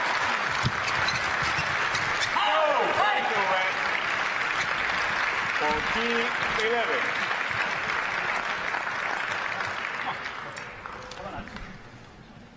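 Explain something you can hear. A crowd applauds and cheers in a large hall, then fades.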